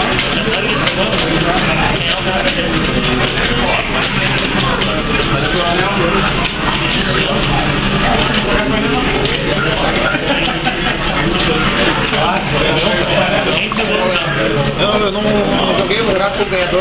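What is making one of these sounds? A crowd of young men chatters and cheers loudly nearby.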